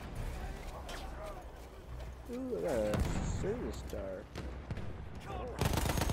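Gunshots crack and boom close by.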